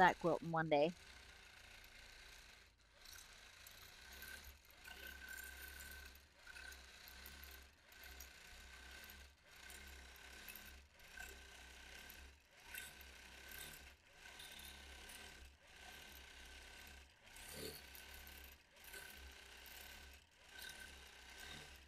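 A quilting machine hums and whirs as it stitches, in repeated bursts.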